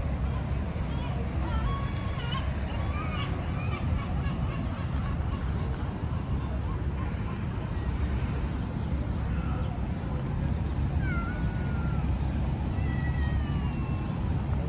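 Kittens meow in high, thin cries.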